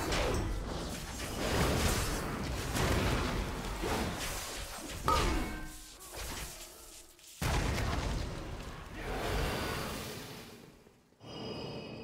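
Magic spells whoosh and crackle in a fast battle.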